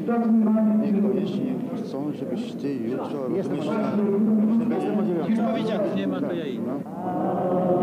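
Men talk with each other close by.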